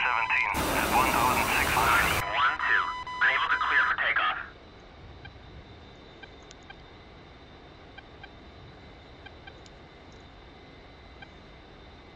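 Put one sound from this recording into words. A jet engine roars steadily.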